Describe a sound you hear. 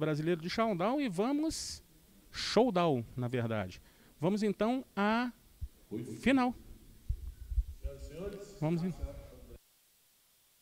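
A middle-aged man speaks with animation into a microphone, close by.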